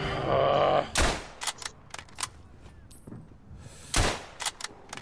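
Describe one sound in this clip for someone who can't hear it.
A heavy machine gun fires.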